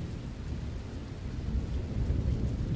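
Water sprays hard against the side of a bus.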